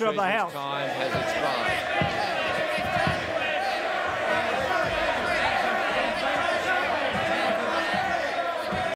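A crowd of people murmur and shout in a large chamber.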